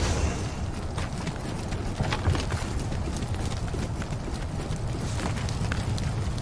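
Footsteps tread on the ground.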